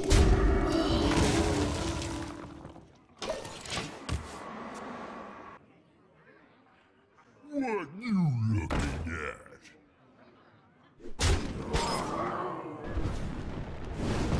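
Game sound effects chime and crash.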